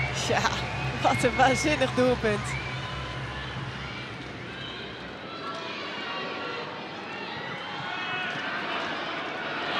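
A large stadium crowd cheers after a goal.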